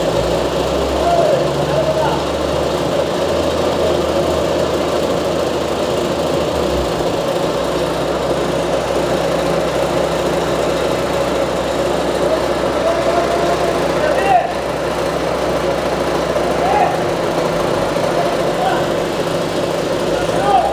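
A large road roller engine rumbles steadily close by.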